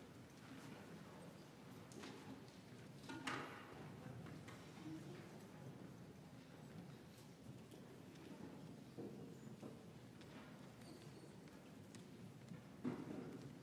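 An audience murmurs quietly in a large echoing hall.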